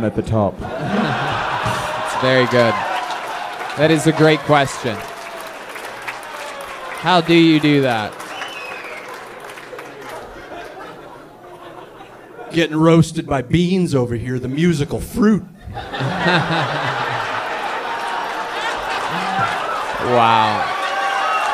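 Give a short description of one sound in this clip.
An audience laughs and cheers in a room.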